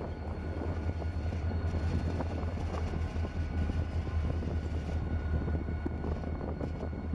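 Diesel locomotive engines rumble deeply and steadily close by.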